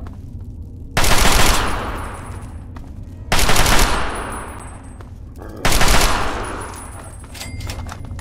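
A rifle fires loud single shots that ring out and echo.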